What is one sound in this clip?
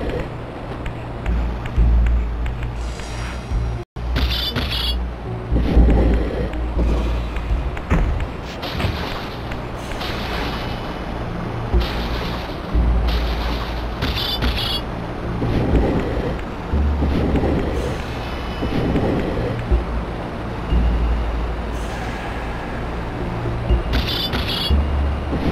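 An energy blade hums and crackles.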